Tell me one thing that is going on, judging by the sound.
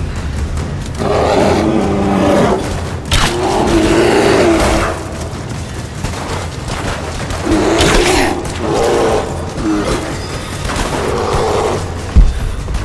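A bear growls and roars loudly.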